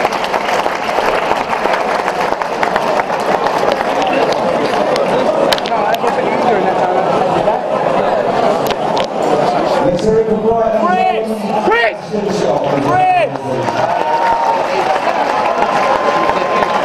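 A large crowd chatters and murmurs loudly in an echoing hall.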